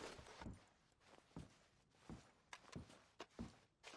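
Footsteps thud softly on a carpeted floor.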